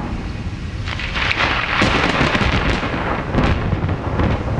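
Thunder cracks and rumbles loudly.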